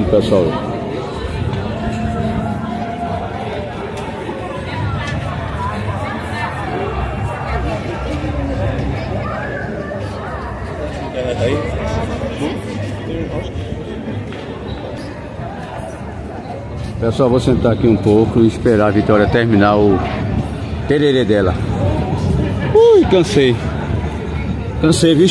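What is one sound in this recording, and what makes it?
A crowd of people chatters outdoors along a busy street.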